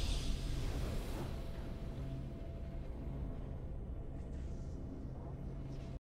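A triumphant game fanfare rings out.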